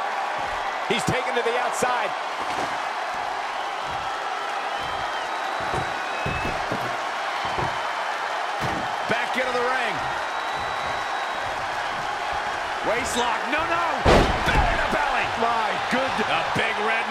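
Heavy thuds of bodies slam onto a wrestling ring mat.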